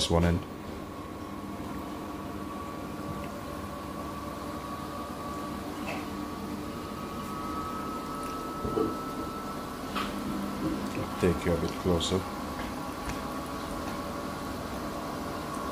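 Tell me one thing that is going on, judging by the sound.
Dough sizzles softly in hot oil.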